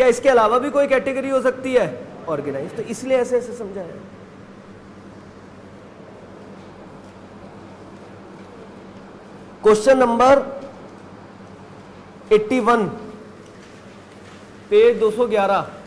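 A man speaks calmly into a close microphone, pausing now and then.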